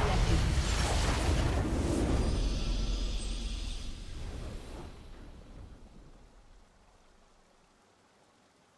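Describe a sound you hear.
A triumphant victory fanfare swells and fades away.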